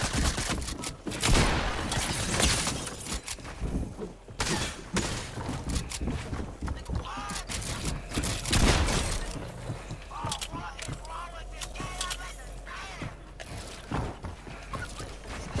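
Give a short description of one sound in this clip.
Building pieces clatter and snap into place in a video game.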